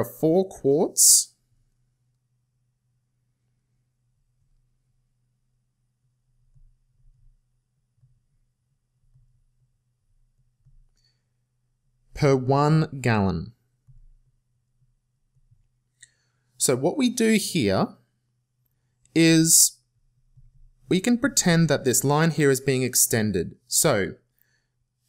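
A young man speaks calmly and explains, close to a microphone.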